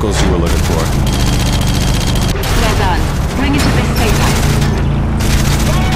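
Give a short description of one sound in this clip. A truck crashes and tumbles over with heavy metal thuds.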